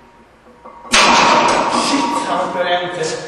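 Heavy weight plates clang down onto the floor.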